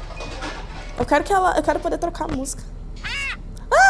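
A young woman speaks with surprise close to a microphone.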